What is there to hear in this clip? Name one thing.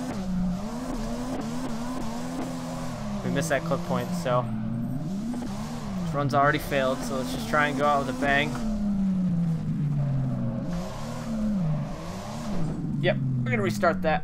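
A car engine revs up and down loudly.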